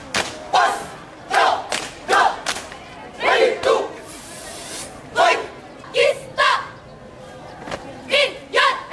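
A group of young people shout drill calls together in short, loud bursts outdoors.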